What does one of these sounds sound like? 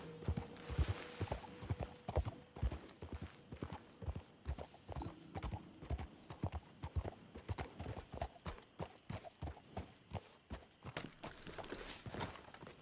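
A horse's hooves clop steadily at a walk.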